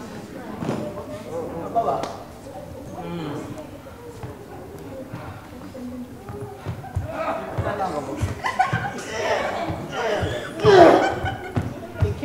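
Footsteps thud on a wooden stage floor.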